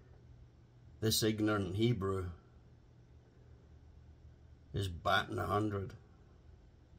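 An older man speaks calmly close by, in short bursts.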